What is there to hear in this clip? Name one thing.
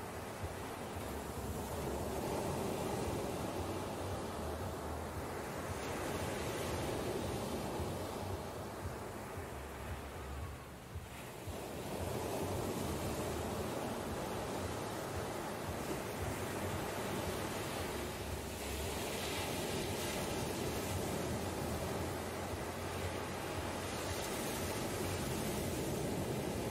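Ocean waves wash steadily onto a beach.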